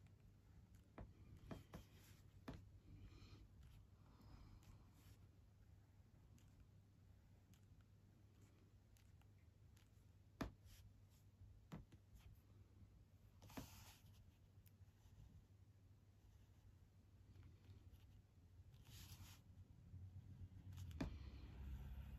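A pencil taps lightly against paper now and then.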